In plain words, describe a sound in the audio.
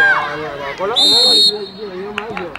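A referee's whistle blows once, sharply.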